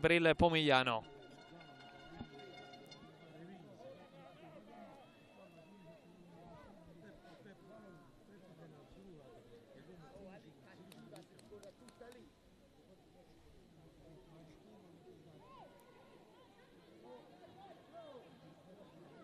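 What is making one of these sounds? Young women call out faintly across an open field.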